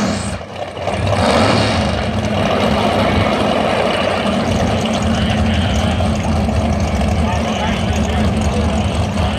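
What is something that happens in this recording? Two drag racing cars launch at full throttle down the strip.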